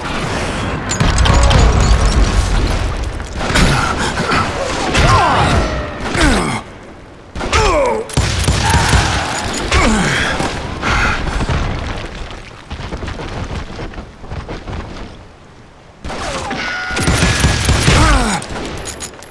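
Pistols fire rapid, loud shots.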